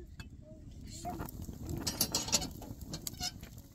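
A wood fire crackles under a griddle.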